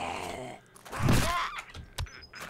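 A club thuds against a zombie.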